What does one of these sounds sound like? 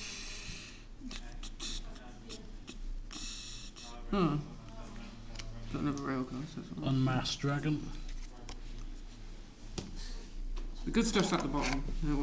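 Playing cards flick and slide against each other.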